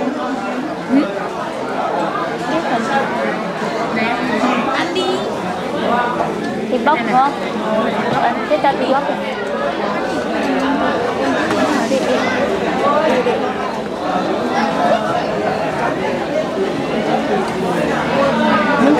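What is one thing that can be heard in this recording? Several women and men chatter nearby.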